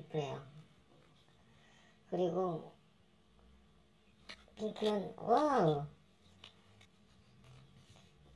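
Trading cards slide and rustle against each other in the hands.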